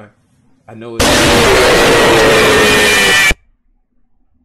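A loud harsh scream blares suddenly.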